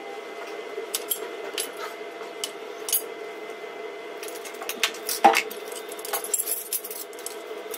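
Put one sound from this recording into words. Metal tools clink and tap against a hard surface.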